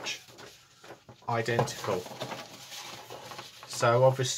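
Paper rustles and crinkles as a large sheet is unfolded and handled.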